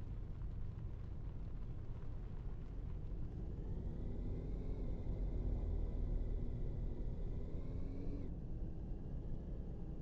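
A car engine rumbles and rises in pitch as the car speeds up.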